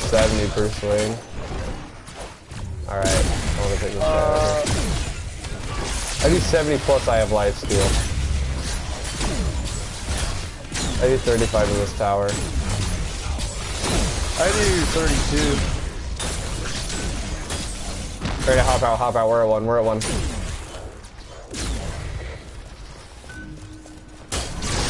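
Fiery magical blasts whoosh and crackle during a fight.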